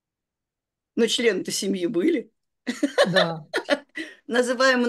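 An elderly woman talks with animation over an online call.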